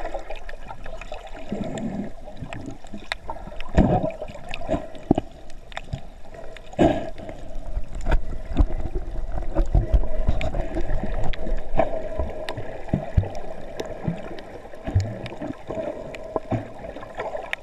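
Sharp crackling clicks pop constantly underwater.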